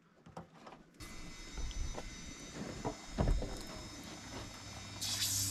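Water sprays from a hose.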